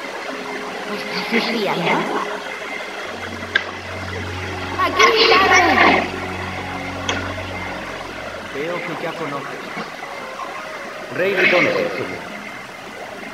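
A young girl speaks calmly, close by.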